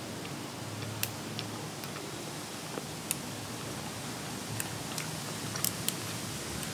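Crisp vegetable stems snap.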